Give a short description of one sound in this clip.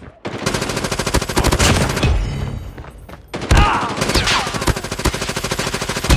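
Rapid gunfire bursts out.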